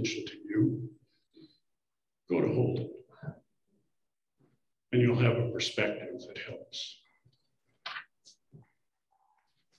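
An elderly man speaks calmly into a microphone, heard through an online call.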